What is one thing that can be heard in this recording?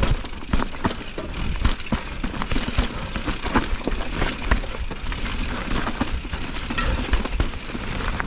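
Bike tyres roll and crunch over a dirt trail.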